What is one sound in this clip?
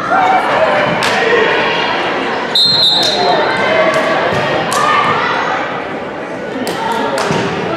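A volleyball is struck with a smack.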